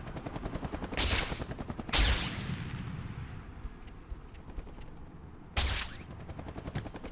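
Web-swinging sound effects whoosh in a video game.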